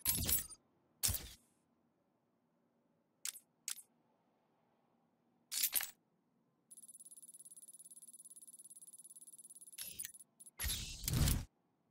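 Short menu clicks sound one after another.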